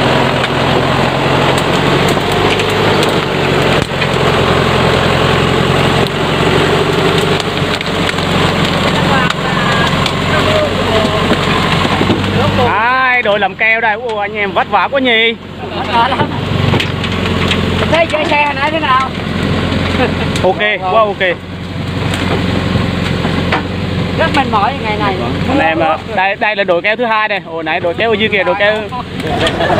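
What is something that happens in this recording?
A truck engine roars heavily.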